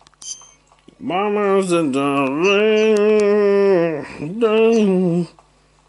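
A handheld game console's speaker plays a loud, wavering electronic tone.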